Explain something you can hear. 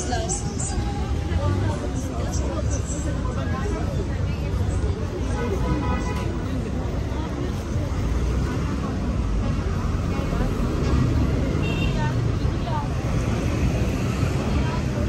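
A crowd chatters and murmurs nearby outdoors.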